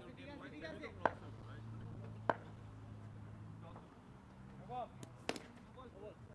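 A hockey stick sharply strikes a ball.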